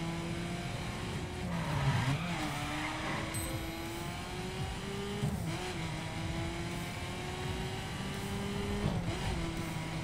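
Car tyres hum on the road.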